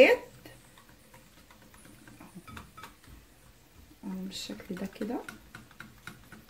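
A wire whisk clinks rapidly against a ceramic bowl while beating batter.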